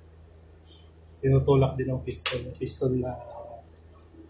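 Metal gear parts clink against each other.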